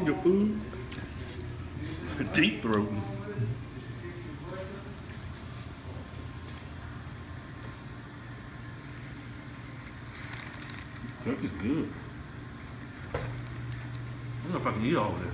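A man makes muffled sounds close by while chewing.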